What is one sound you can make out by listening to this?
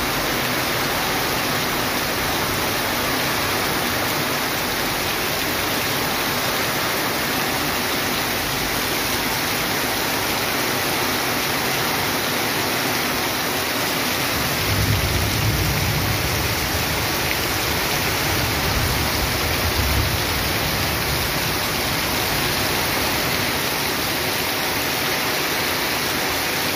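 Heavy rain pours down steadily outdoors, splashing on wet ground.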